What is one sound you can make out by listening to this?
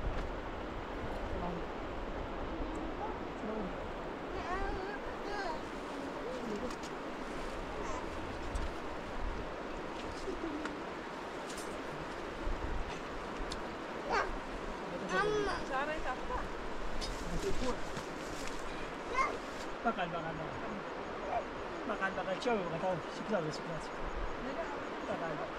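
Children talk and call out nearby, outdoors.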